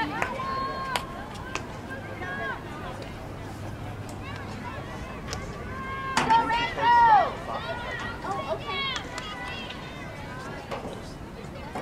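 Field hockey sticks crack against a ball.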